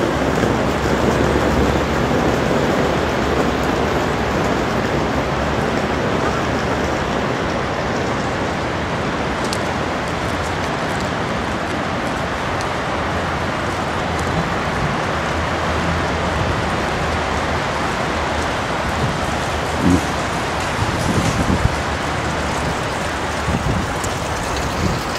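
Wind blows steadily outdoors, rushing across the microphone.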